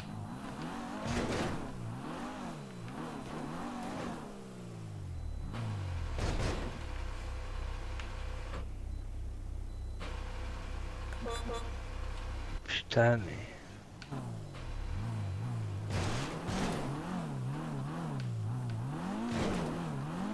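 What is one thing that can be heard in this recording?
A car engine revs and roars, its pitch rising and falling.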